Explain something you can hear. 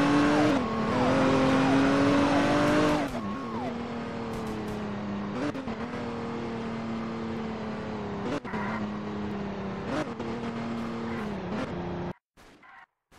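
A car engine hums steadily, rising and falling in pitch as the car speeds up and slows down.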